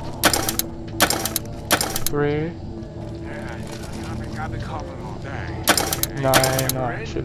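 A dial clicks and ratchets as it turns.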